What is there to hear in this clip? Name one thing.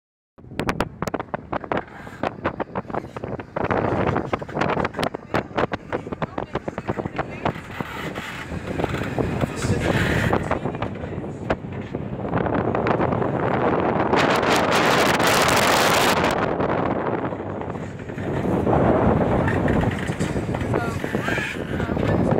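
Waves splash against the hull of a sailing boat.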